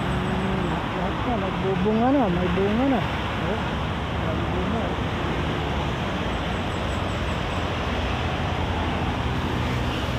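Traffic rumbles past on a road nearby.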